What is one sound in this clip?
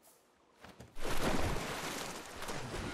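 A body splashes heavily into shallow water.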